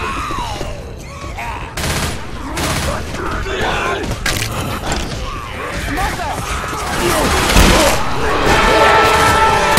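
Zombies snarl and moan.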